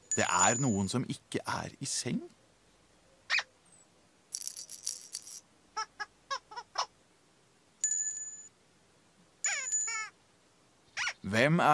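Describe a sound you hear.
A man's playful, high voice speaks up close.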